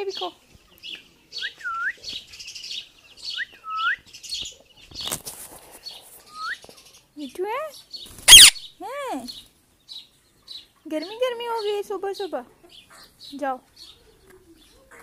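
A parrot squawks and chirps up close.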